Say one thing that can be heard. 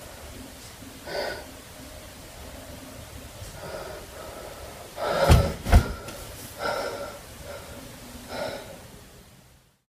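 A teenage boy speaks briefly and casually nearby.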